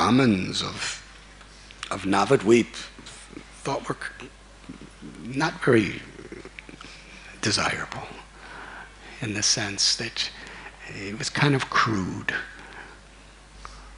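A middle-aged man speaks with animation into a microphone in a reverberant room.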